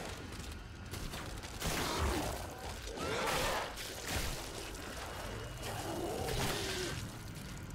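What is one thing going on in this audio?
A gun fires in loud bursts.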